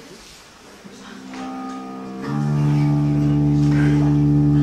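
An electric guitar plays a held chord through an amplifier.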